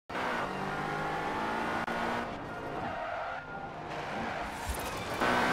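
A car engine roars at high revs and shifts through gears.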